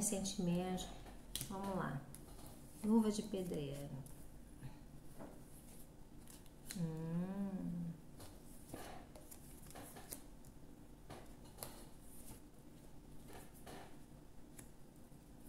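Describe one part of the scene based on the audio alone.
Playing cards are laid down on a table with soft taps.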